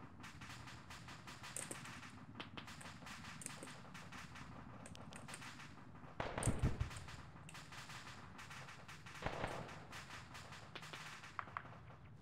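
Boots step across a hard tiled floor.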